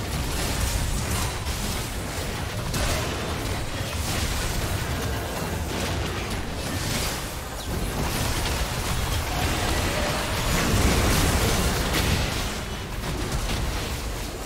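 Game spell effects crackle and burst in a fight.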